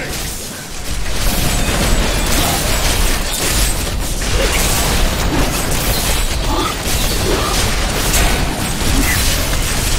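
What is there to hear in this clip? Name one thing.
Electric lightning zaps and crackles.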